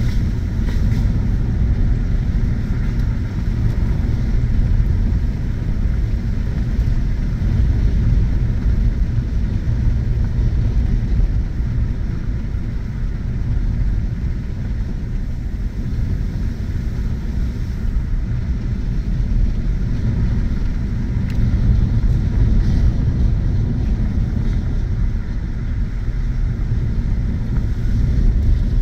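Tyres rumble over a dirt road.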